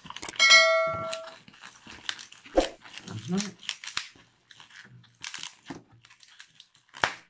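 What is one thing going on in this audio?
Balloons squeak and rub as they are twisted.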